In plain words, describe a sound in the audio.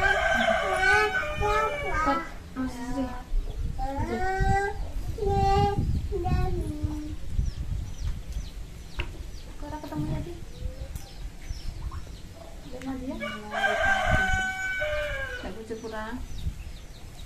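A woman talks nearby in a lively, high voice.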